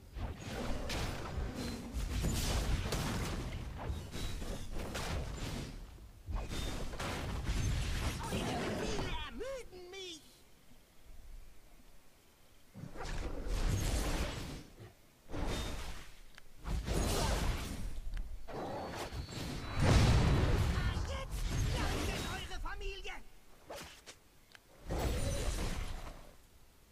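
Game sword strikes and spell effects clash in bursts.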